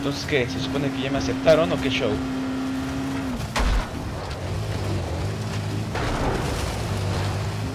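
Tyres crunch over a dirt road.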